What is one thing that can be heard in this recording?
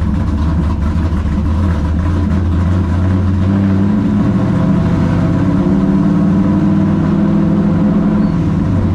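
A race car engine roars loudly and steadily from inside the cabin.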